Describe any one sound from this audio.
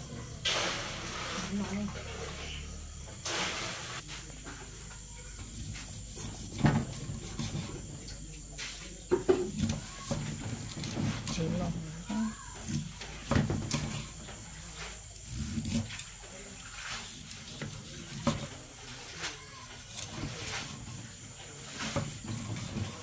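A knife slices through meat and taps on a wooden chopping board.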